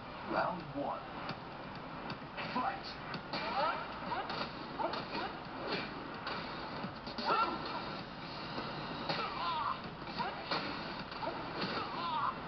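Punches and kicks land with sharp thuds in a fast video game fight.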